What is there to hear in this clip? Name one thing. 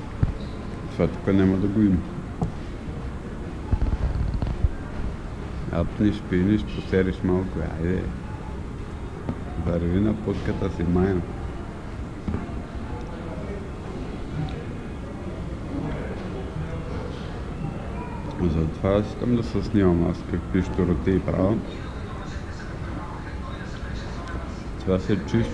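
A man talks casually close to a microphone, in short bursts.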